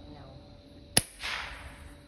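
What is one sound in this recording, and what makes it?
A shotgun fires once with a sharp bang outdoors.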